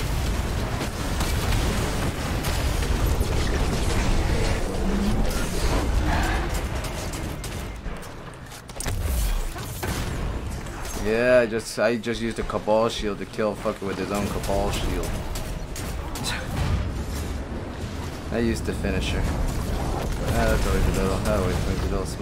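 Rapid gunfire crackles and booms.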